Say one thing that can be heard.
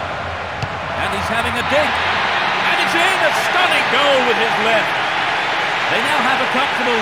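A large crowd bursts into loud cheering.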